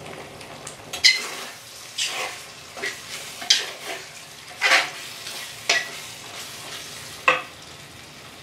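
A metal spatula clinks and scrapes against a pan.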